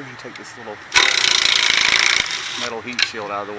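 A cordless ratchet whirs loudly as it turns a bolt.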